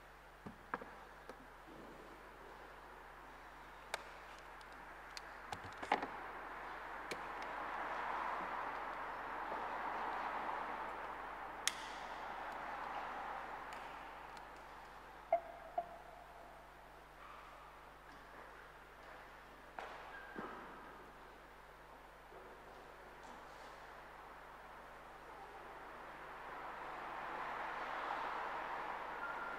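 A man murmurs prayers softly, far off in a large echoing hall.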